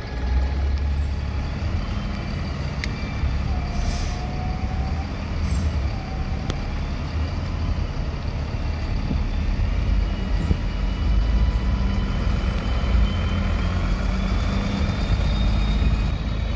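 A bus engine rumbles nearby as the bus pulls slowly away.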